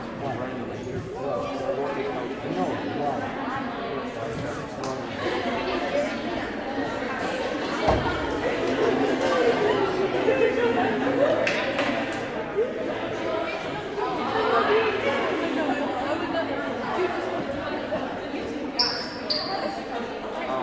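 Many voices chatter and echo through a large hall.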